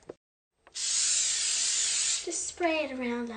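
Cooking spray hisses from a can.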